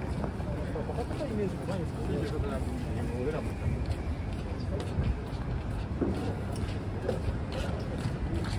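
People chatter faintly nearby.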